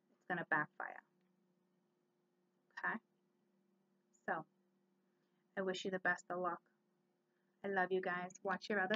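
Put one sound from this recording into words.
A woman speaks calmly and close by, with pauses.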